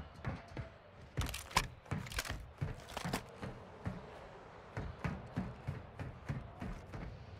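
Footsteps thud on a metal roof.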